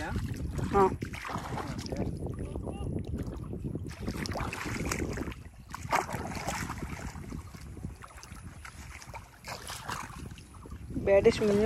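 Feet wade and squelch through shallow muddy water.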